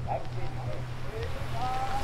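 Water rushes and splashes over rocks.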